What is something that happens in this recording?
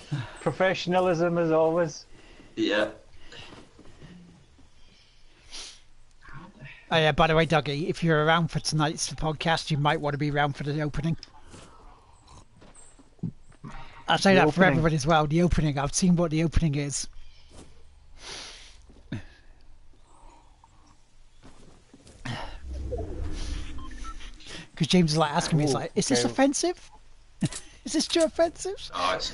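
A man talks casually into a microphone, close by.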